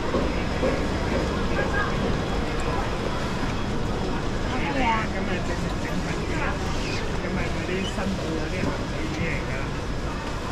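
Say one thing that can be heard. The wheels of a shopping trolley rattle over a tiled floor.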